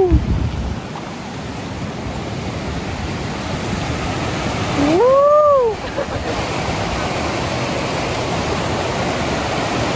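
A stream rushes and churns over rocks.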